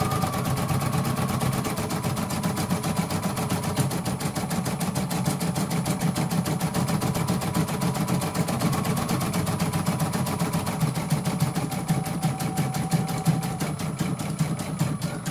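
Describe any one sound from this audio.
An embroidery machine whirs and taps rapidly as its needle stitches.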